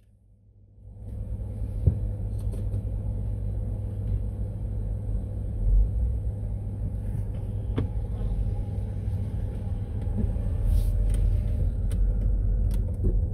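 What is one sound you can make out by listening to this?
A car engine rumbles low as the car rolls slowly forward.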